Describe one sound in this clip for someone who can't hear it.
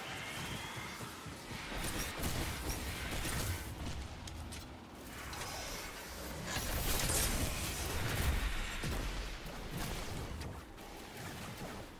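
Gunfire cracks rapidly.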